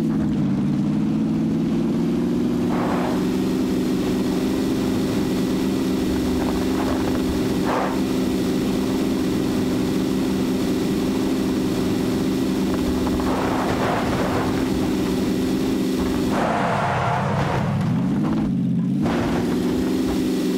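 A car engine drones steadily at high speed, dipping briefly near the end.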